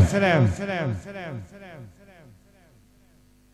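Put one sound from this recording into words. An electronic keyboard plays a falling sweep through loudspeakers that echoes repeatedly and fades.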